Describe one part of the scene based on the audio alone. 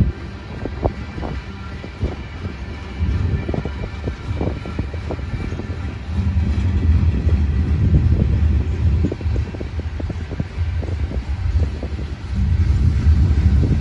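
Wind gusts outdoors, rumbling and buffeting loudly.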